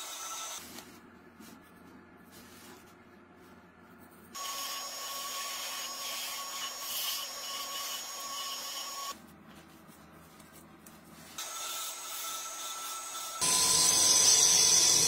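A wood lathe hums steadily.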